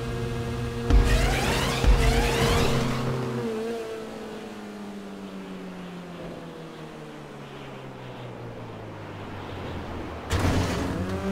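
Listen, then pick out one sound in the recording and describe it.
A car lands with a thud.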